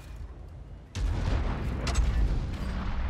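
A large explosion roars.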